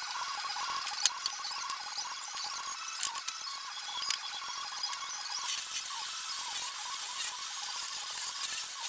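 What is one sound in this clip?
Pieces of wood knock and clatter on a workbench.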